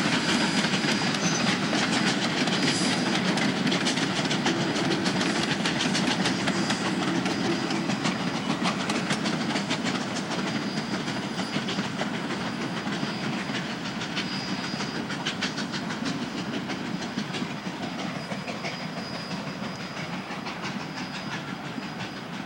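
Train cars rumble and clatter steadily along the rails, slowly fading as the train moves away.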